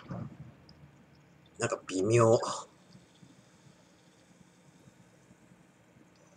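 A drink pours from a can into a glass.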